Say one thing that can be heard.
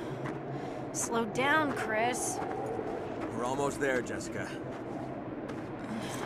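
A young woman speaks breathlessly, close by.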